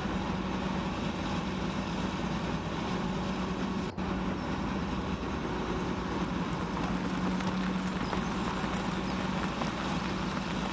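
A diesel engine idles with a steady low rumble.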